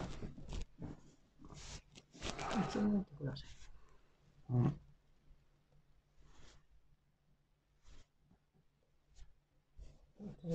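Clothing rustles and shuffles as a person shifts weight on another's back.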